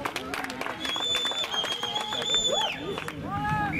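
A referee's whistle blows long and shrill.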